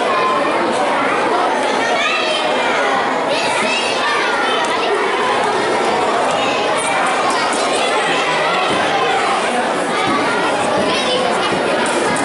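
A crowd of people chatters and murmurs.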